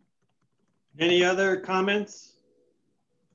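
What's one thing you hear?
A man speaks briefly and calmly through a microphone on an online call.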